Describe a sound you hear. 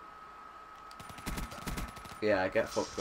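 A rifle fires a rapid burst of shots.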